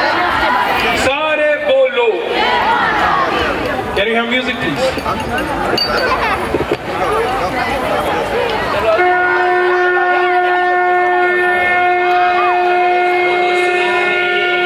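A crowd of young people chatters and calls out nearby.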